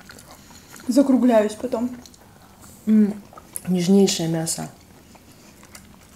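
A young woman sips a drink through a straw.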